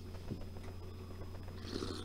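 A man sips a drink from a mug.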